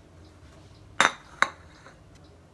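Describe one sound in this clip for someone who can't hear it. A plate clatters as it is set down on a counter.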